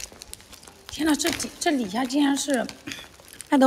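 A young woman speaks close to the microphone.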